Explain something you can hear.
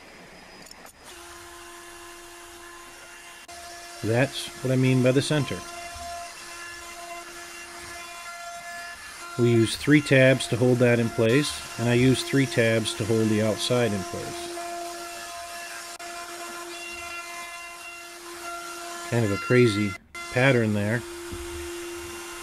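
A router motor whines steadily as it cuts into wood.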